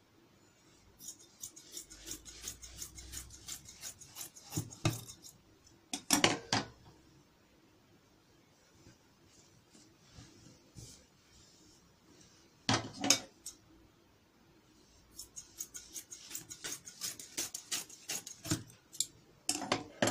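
Scissors snip through cloth with quick crisp cuts.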